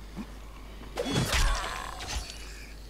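A blade strikes flesh with heavy, wet thuds.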